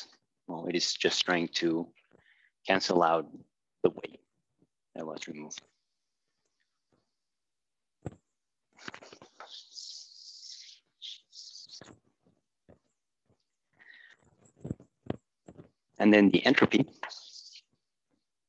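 A man speaks calmly, as if explaining a lesson.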